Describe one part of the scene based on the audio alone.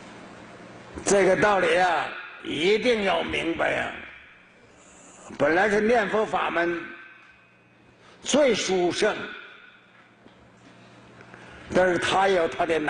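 An elderly man speaks calmly and slowly in short phrases through a microphone.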